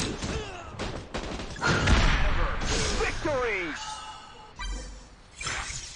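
Gunfire rattles in a battle.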